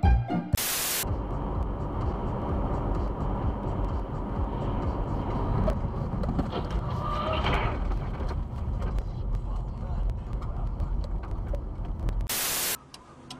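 A car's tyres rumble steadily on a road.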